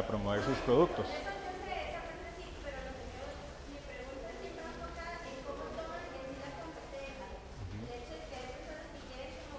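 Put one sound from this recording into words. A man speaks calmly to an audience in a large echoing hall.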